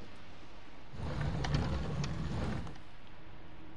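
Something rustles and scrapes as a child rummages through a shelf.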